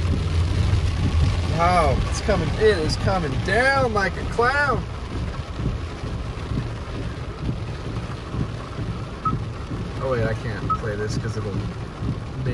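Rain patters on a car's windshield.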